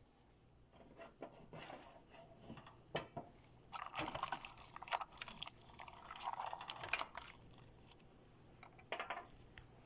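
Vegetables sizzle and rustle as they are stirred in a pan.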